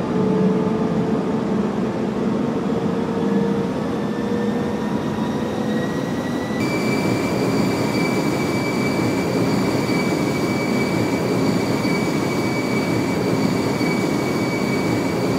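Airliner jet engines whine and roar in flight, the pitch of the whine rising.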